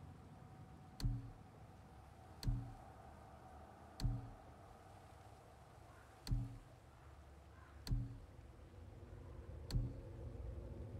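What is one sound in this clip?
Soft menu clicks sound at steady intervals.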